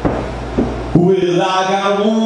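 An electric keyboard plays sustained notes.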